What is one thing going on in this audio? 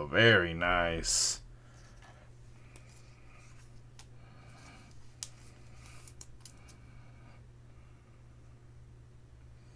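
A card sleeve rustles in a man's hands.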